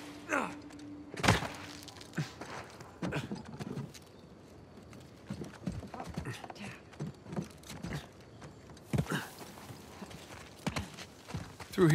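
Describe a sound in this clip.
Footsteps run over wooden boards and grass.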